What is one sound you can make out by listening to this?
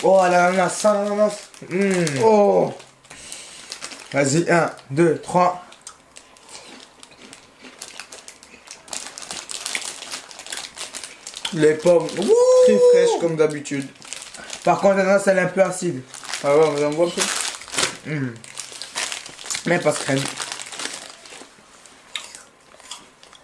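Paper food wrappers crinkle and rustle.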